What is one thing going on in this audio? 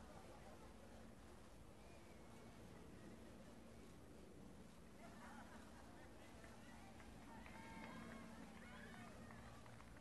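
A crowd chatters and cheers nearby outdoors.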